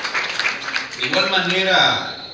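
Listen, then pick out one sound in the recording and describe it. A man speaks into a microphone over loudspeakers.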